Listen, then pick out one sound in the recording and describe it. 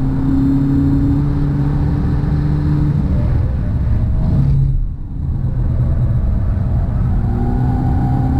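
Tyres hum and rumble on the road.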